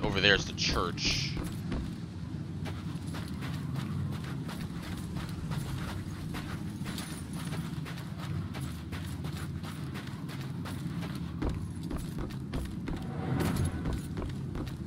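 Quick footsteps run over sand and wooden boards.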